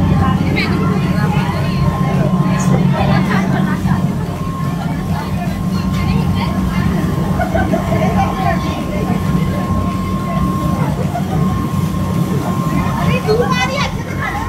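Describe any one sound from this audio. Men and women talk nearby in a busy crowd.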